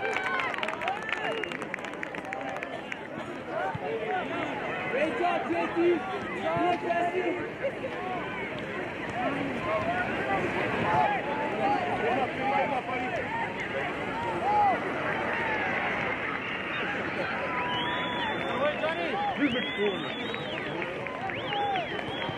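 Young players shout and call to one another across an open field.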